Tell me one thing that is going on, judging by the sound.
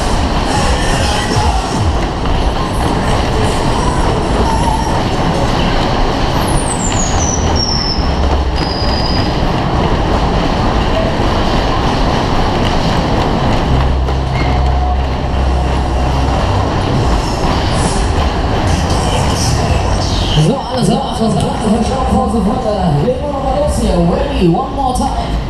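A fairground ride car rumbles and rattles loudly as it spins around its track.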